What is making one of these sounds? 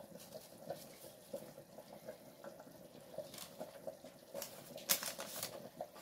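Lemon slices are laid with soft taps and rustles onto baking paper.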